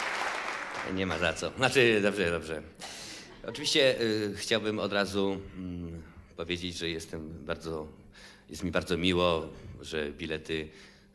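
A young man speaks calmly into a microphone over a loudspeaker.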